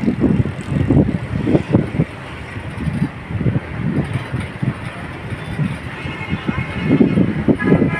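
Passenger train coaches roll past, with wheels clattering over rail joints.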